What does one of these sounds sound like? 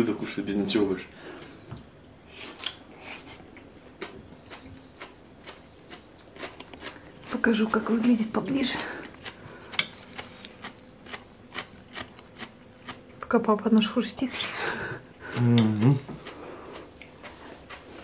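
A spoon clinks and scrapes against a glass bowl.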